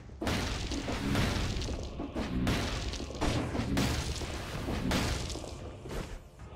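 Fiery blasts boom and crackle repeatedly.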